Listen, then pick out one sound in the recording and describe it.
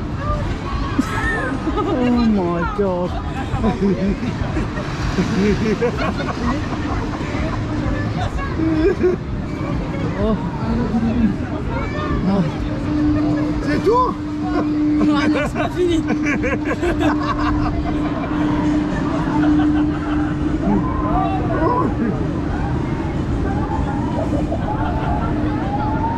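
Wind buffets loudly against the riders.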